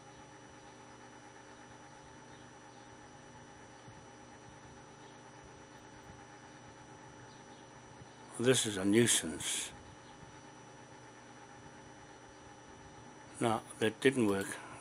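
Computer equipment hums steadily and quietly.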